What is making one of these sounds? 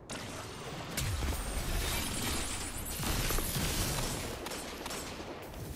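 Crackling electric blasts sizzle.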